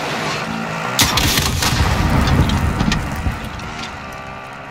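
A vehicle engine rumbles close by.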